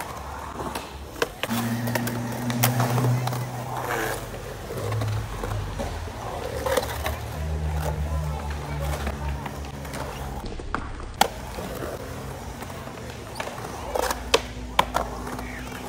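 A skateboard clacks sharply against a concrete edge.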